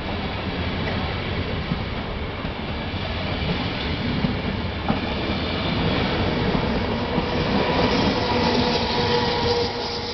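A passenger train rumbles past on the rails, wheels clattering.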